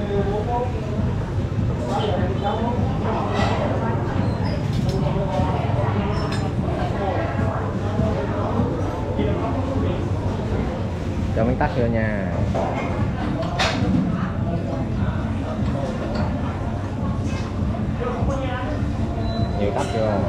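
Several men and women talk nearby in a busy, echoing room.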